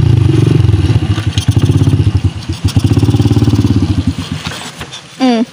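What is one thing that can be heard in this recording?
A motorcycle engine rumbles at idle close by.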